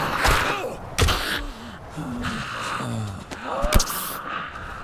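A blunt weapon thuds against a body.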